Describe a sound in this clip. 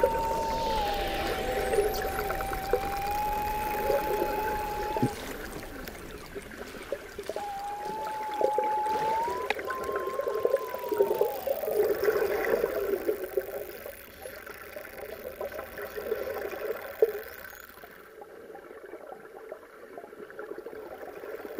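Dolphins click underwater.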